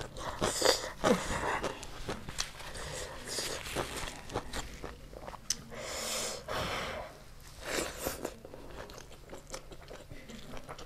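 A woman chews food loudly with wet smacking sounds close to a microphone.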